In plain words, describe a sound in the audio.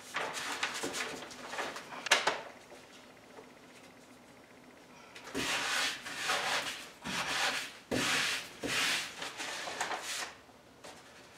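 Something rubs and scrapes against a wall in short, noisy bursts.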